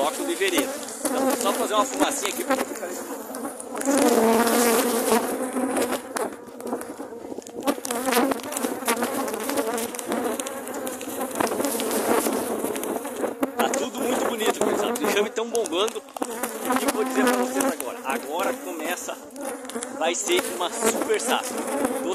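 Bees buzz around close by.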